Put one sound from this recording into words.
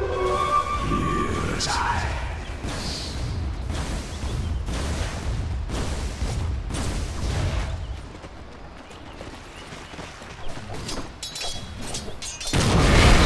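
Game weapons strike with sharp hits.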